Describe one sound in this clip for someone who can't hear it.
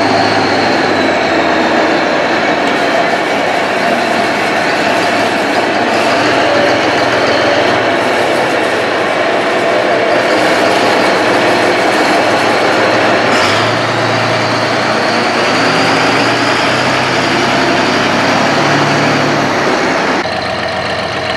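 A diesel wheel loader's engine drones as it drives.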